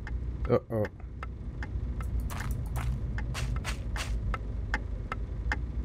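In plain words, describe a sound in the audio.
An alarm clock ticks.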